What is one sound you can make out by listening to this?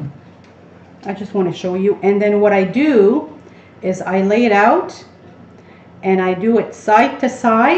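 A woman talks calmly and clearly into a nearby microphone.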